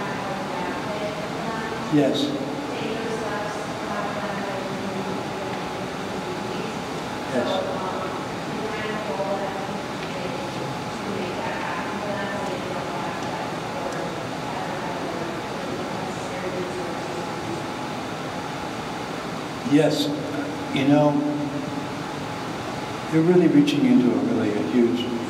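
A man speaks calmly over a microphone in a large room.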